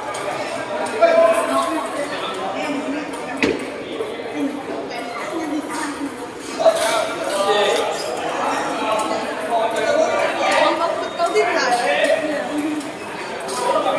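Table tennis balls click back and forth on tables and paddles.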